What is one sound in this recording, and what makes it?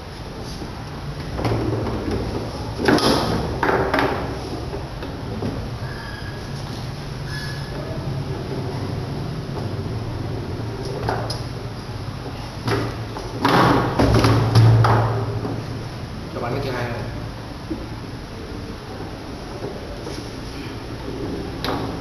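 Table football rods clatter as players spin and slide them.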